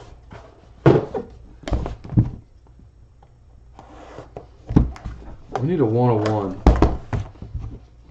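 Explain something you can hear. A metal case clicks and clanks as hands handle it.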